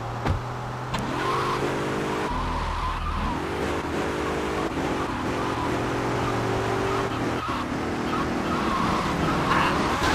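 A car engine revs and drones steadily.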